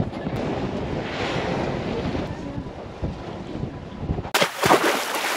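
An elderly woman talks cheerfully close by.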